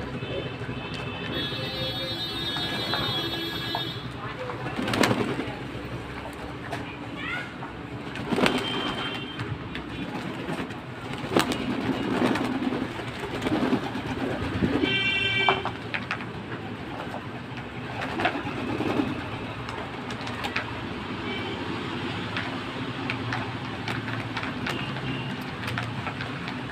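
Pigeons splash in shallow water.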